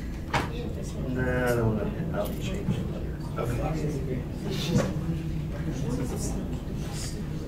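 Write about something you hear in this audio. A man speaks in a lecturing tone in a room with some echo.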